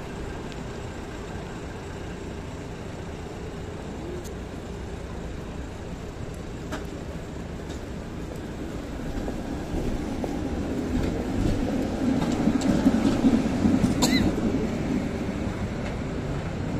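A tram rumbles slowly past on its rails close by.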